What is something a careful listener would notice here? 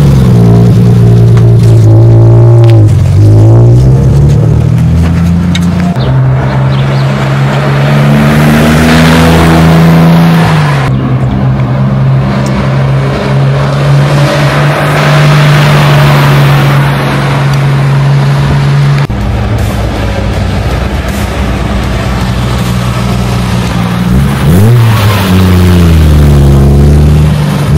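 A sports car engine rumbles deeply and revs up and down as the car drives past.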